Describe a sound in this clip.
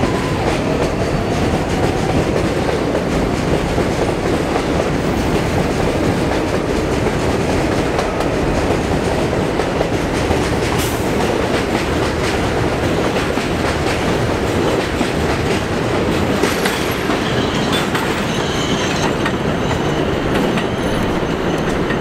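Wheels click and squeal on the rails.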